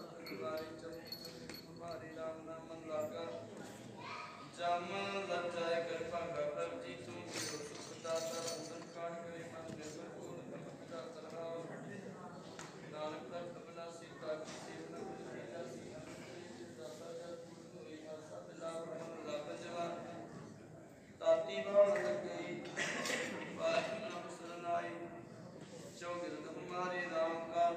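A man chants a prayer into a microphone, heard through loudspeakers in an echoing hall.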